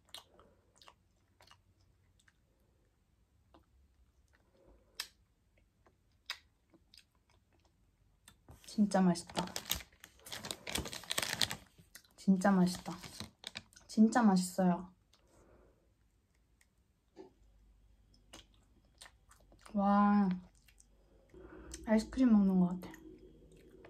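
A young woman chews and bites into a crunchy bar.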